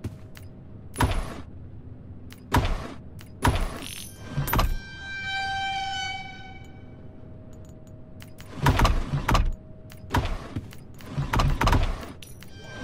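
Wooden drawers slide open and shut with knocks.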